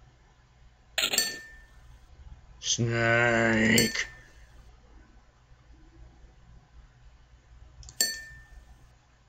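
A game chime sounds as an answer is chosen.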